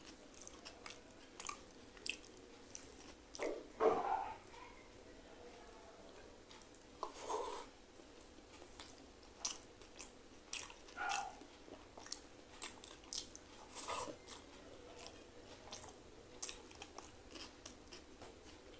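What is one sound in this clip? A young man chews and smacks his lips loudly, close to a microphone.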